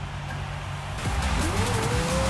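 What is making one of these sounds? A racing car engine revs up loudly.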